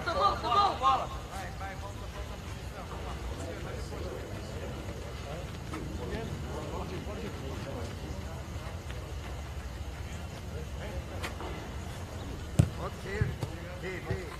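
Men shout to each other outdoors across an open field.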